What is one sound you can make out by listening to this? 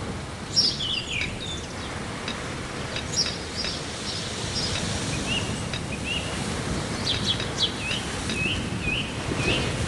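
Short chirping game effects pop as bridge beams vanish one by one.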